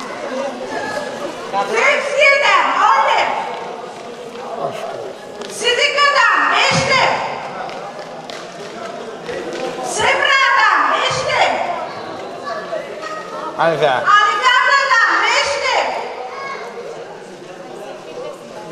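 A woman speaks loudly and with animation through a microphone and loudspeaker.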